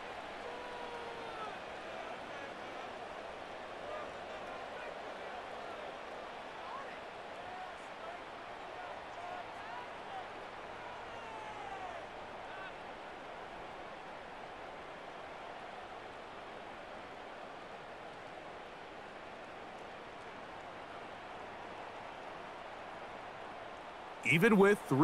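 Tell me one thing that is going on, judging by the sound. A large stadium crowd roars and cheers steadily, with whistles now and then.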